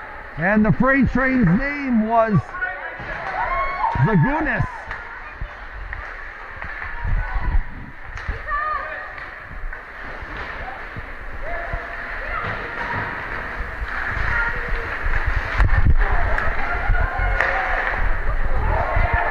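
Skates scrape on ice.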